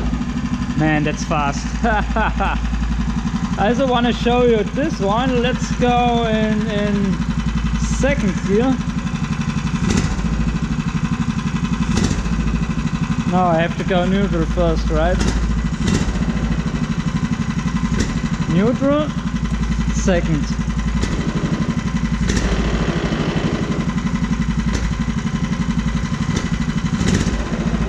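A small petrol engine idles with a steady, low chugging drone.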